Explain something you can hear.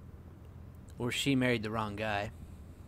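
A man answers angrily, briefly.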